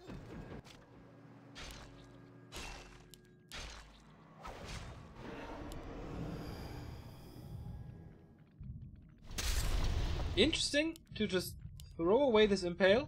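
Game weapons clash and spells crackle in a battle.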